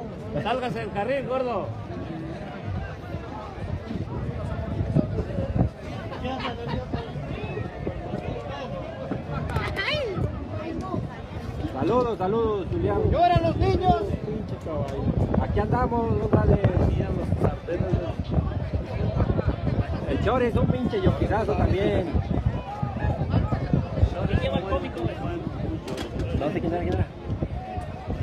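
Men nearby shout with excitement.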